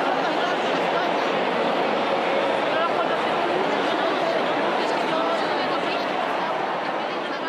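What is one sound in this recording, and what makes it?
A large crowd of men and women chatters loudly in a big echoing hall.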